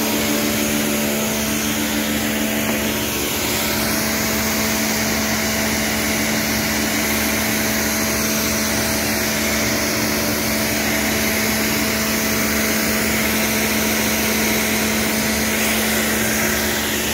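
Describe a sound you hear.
A pressure washer motor hums steadily close by.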